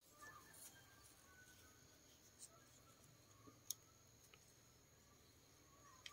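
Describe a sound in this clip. Bamboo strips rustle and creak as hands tie them together.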